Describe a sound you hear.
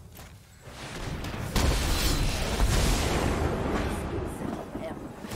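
A game plays a loud magical blast effect.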